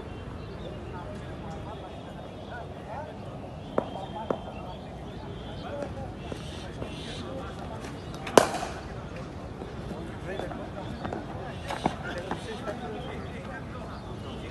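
Men talk and call out in the distance.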